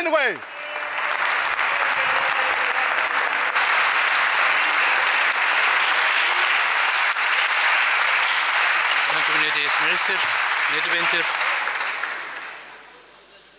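A crowd applauds loudly in a large echoing hall.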